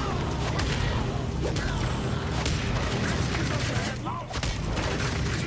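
Heavy punches and kicks land with sharp thuds in a fight.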